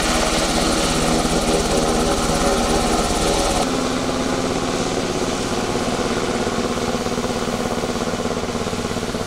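A military helicopter's rotor thuds overhead.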